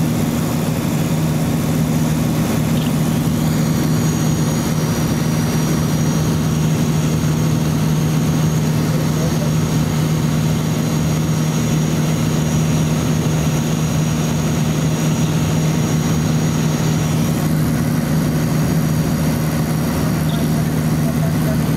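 A small propeller plane's engine drones loudly and steadily from inside the cabin.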